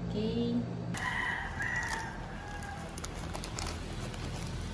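Scissors snip through a plastic mailer bag.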